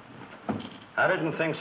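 An elderly man speaks gruffly, close by.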